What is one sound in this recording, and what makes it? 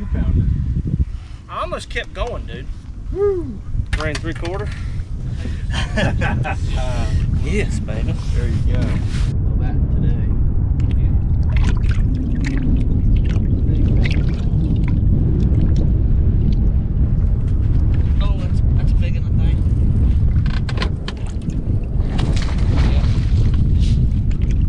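Wind rumbles across the open water.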